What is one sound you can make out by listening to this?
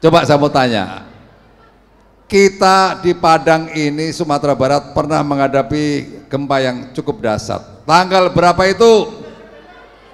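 A man speaks with animation into a microphone through loudspeakers in a large echoing hall.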